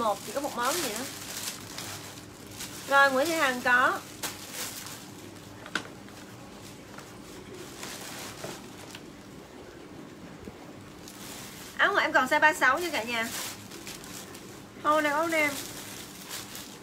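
Plastic packaging rustles.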